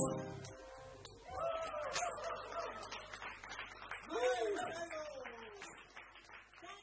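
A trumpet plays.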